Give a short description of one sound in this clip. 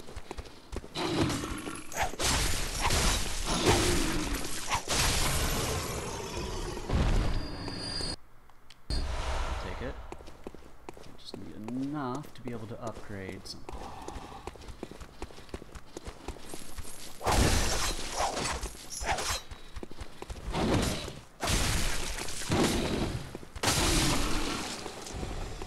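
Blades swish and clang in a close fight.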